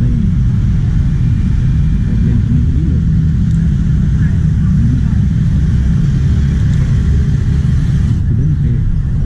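Scooter engines hum and buzz in passing street traffic nearby.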